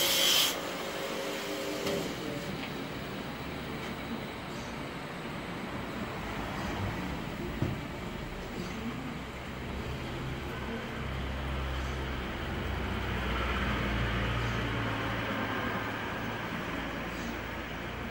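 A blade scrapes against a grinding wheel.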